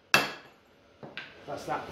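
A hammer strikes metal with a sharp ringing clang.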